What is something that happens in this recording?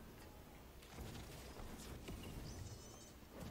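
A fire spell bursts with a loud whoosh.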